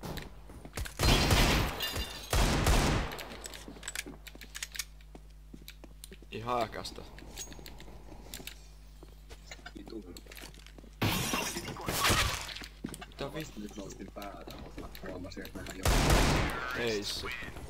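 Pistol shots bang loudly.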